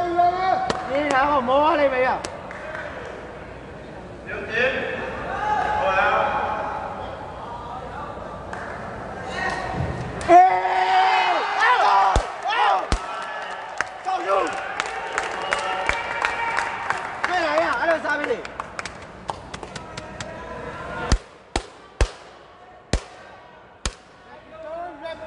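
Young men shout loudly across the court.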